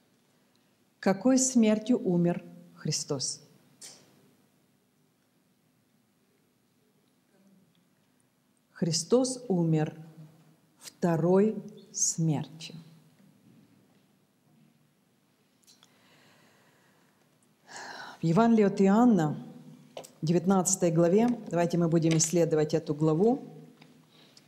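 An older woman speaks calmly into a microphone, with long pauses.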